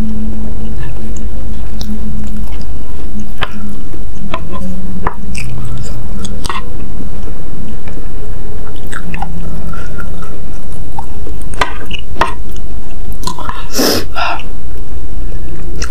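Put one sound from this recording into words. Wooden utensils clink and scrape against a bowl.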